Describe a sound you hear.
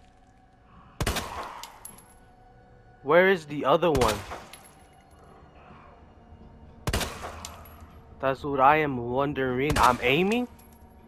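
A pistol fires single loud shots.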